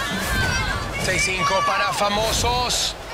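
A group of young men and women shout and cheer excitedly.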